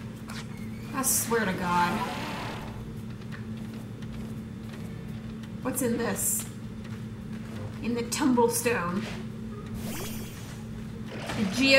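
A young woman talks casually into a close microphone, in short bursts.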